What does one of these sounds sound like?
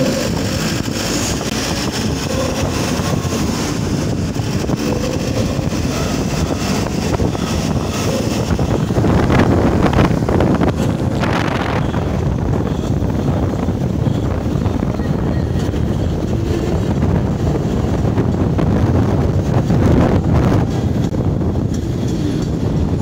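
Wind rushes past a moving vehicle.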